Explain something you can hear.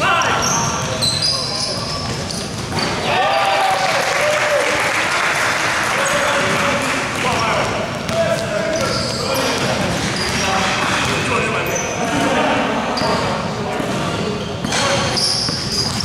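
Young men shout and call out across a large echoing hall.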